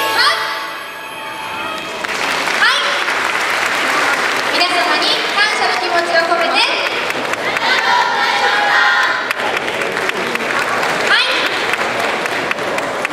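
A group of women shout calls together, echoing in a large hall.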